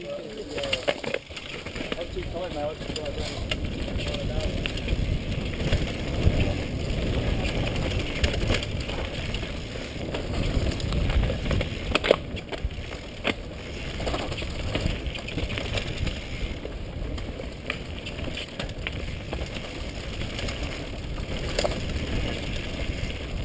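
Bicycle tyres rumble over a dirt trail.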